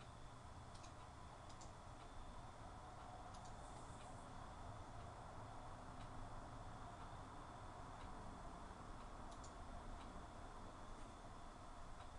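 An elderly man speaks calmly into a microphone, explaining.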